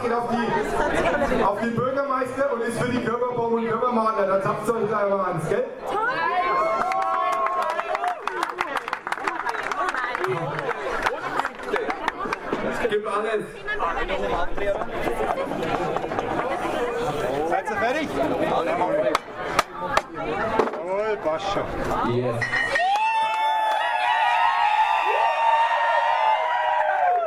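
A crowd of young men chatters and calls out loudly nearby.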